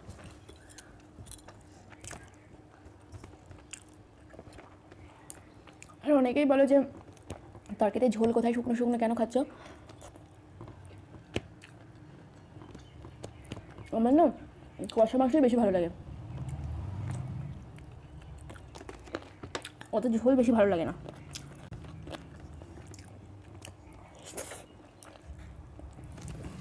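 A young woman chews and smacks her lips close by.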